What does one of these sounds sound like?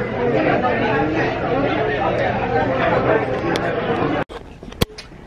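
Many people chatter in a busy indoor space.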